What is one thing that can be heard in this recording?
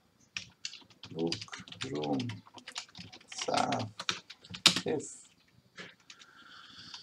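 Keys click on a keyboard.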